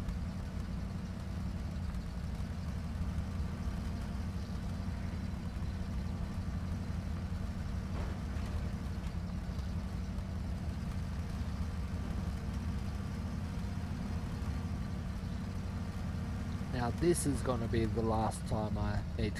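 A heavy truck engine rumbles steadily at low speed.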